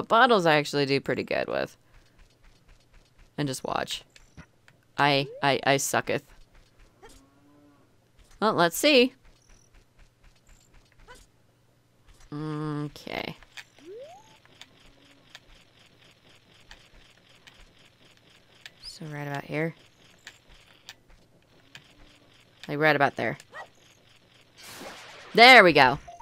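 A young woman talks with animation into a close microphone, in short bursts.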